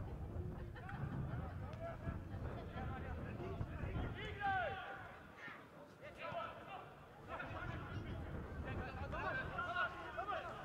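Young men shout to each other across an outdoor football pitch.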